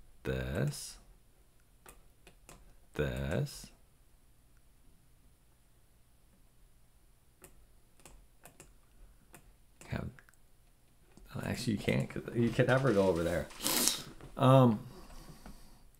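A man talks calmly and thoughtfully into a close microphone, in short bursts with pauses.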